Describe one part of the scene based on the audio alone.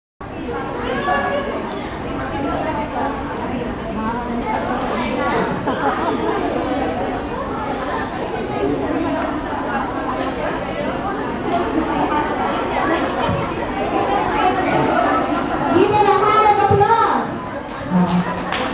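Music with singing plays loudly through loudspeakers in a large hall.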